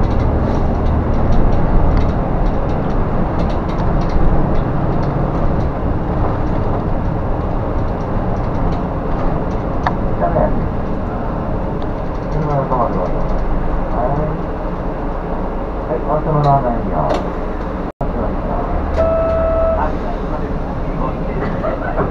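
Loose parts rattle and clatter inside the bus.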